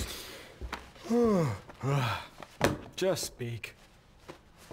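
A younger man answers with a short, amused remark.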